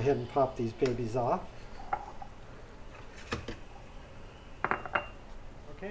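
An espresso machine lever clunks.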